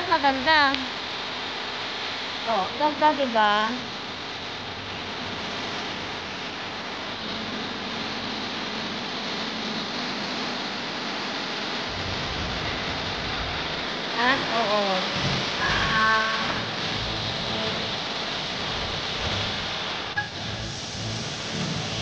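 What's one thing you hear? Water splashes and rushes steadily down a small fountain cascade.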